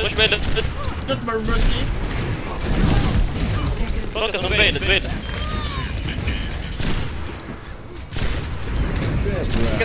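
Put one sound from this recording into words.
Pistols fire in rapid bursts of shots.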